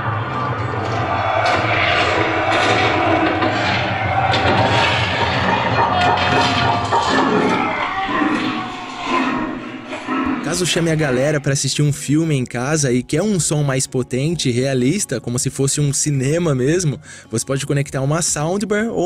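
A film soundtrack with dramatic music plays through a small loudspeaker.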